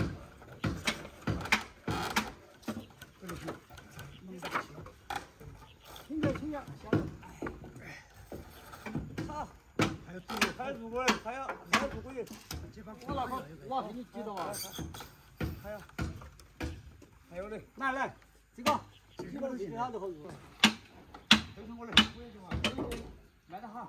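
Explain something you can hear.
Wooden beams knock and bang together.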